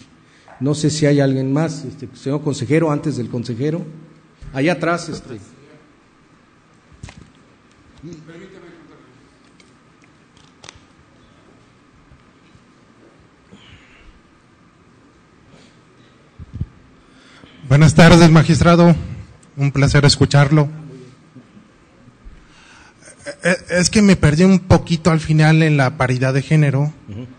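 A man speaks calmly over a loudspeaker in a large echoing hall, with pauses.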